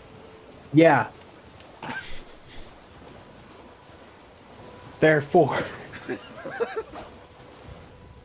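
A horse gallops, hooves splashing through shallow water.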